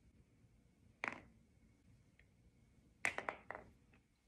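Garlic cloves drop onto a plastic cutting board with light taps.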